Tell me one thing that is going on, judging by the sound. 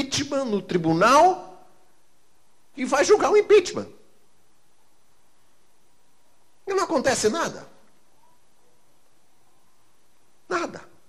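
An older man speaks with animation into a microphone, in short bursts with pauses.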